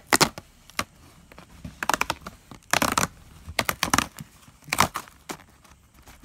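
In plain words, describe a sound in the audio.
A cardboard box flap is opened with a scrape.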